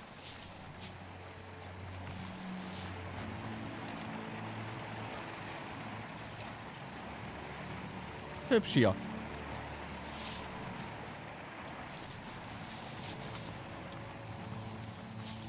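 Footsteps patter on a forest floor.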